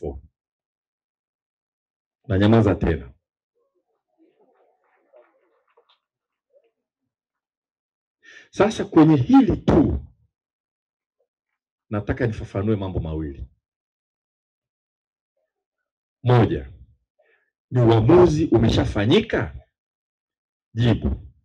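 A middle-aged man speaks slowly and deliberately through a microphone, with long pauses.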